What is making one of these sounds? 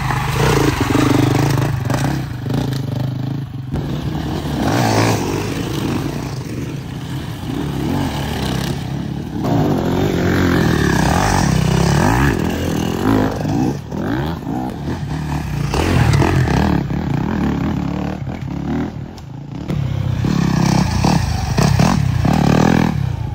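Knobby tyres spin and spray mud.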